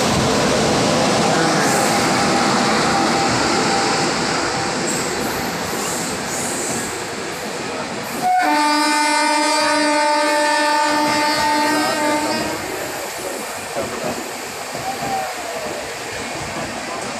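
A train rolls past close by, its carriages rumbling and clattering on the rails.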